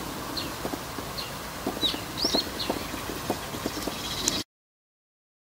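Blueberries roll and tap softly against each other in a palm.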